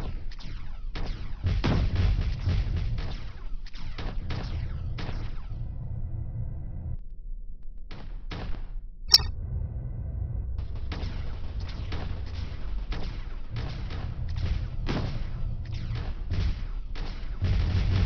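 Rapid cannon fire bursts out in quick volleys.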